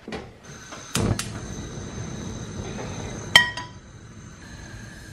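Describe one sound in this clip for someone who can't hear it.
A gas burner ignites and hisses steadily.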